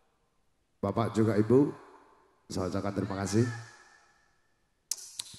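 A man sings loudly through a microphone and loudspeakers, with echo trailing off.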